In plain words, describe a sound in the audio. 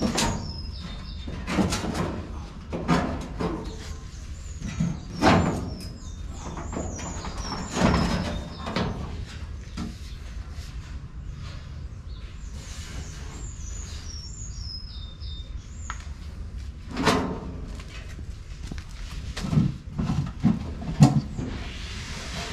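Metal clunks and knocks as a truck panel is handled.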